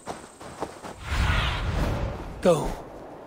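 Wings flap in a loud rushing whoosh.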